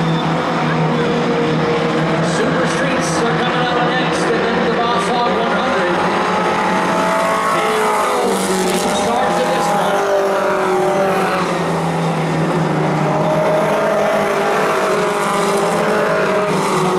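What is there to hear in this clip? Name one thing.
Race car engines roar and whine around a track.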